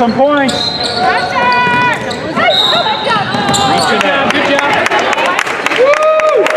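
Young players shout to each other in an echoing gym.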